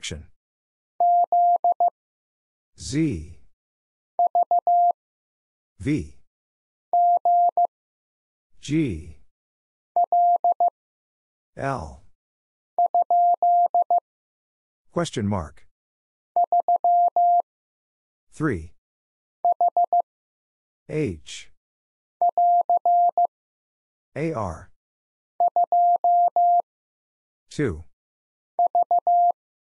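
A Morse code key taps out short, steady beeps in quick groups.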